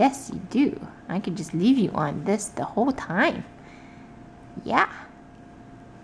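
A woman speaks close by to a baby in a high, playful sing-song voice.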